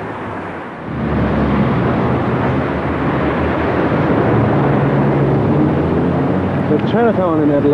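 Many voices of passers-by murmur outdoors.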